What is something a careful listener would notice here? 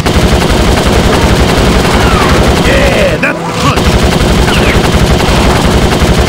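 A kart engine roars steadily.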